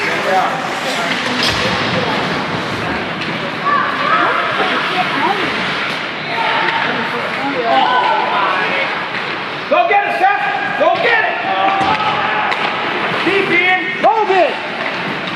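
Young men shout to each other across a large echoing rink.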